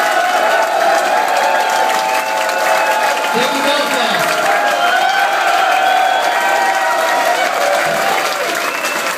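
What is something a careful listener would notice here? A band plays loud live music with keyboards.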